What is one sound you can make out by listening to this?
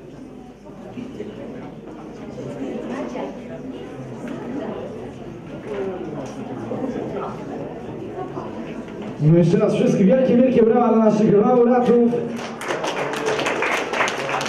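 Men and women chat quietly nearby.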